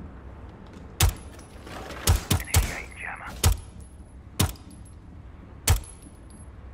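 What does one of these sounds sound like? A pistol fires single sharp shots at an uneven pace.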